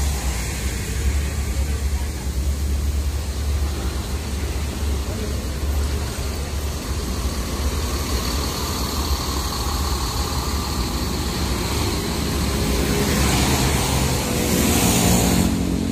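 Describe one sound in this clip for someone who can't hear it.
Traffic passes on a road outdoors.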